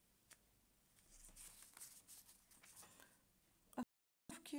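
Newspaper pages rustle and crinkle as they are handled.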